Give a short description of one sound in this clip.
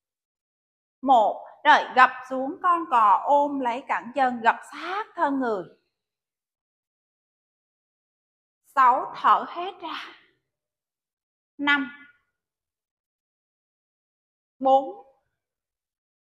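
A woman gives calm spoken instructions close to a microphone.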